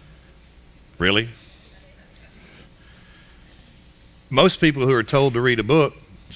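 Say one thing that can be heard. A man speaks through a microphone in a large room, pausing between phrases.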